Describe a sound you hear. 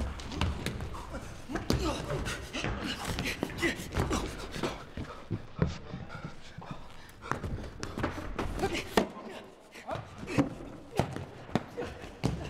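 Shoes thud as a young man leaps across wooden blocks.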